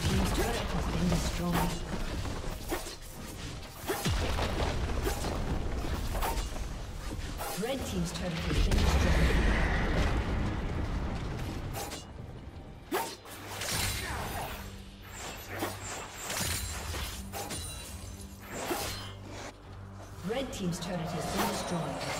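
Video game spell effects whoosh, zap and crackle during a battle.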